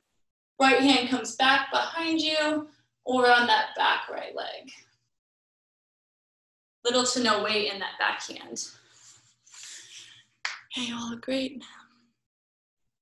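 A woman gives instructions with animation, heard through an online call.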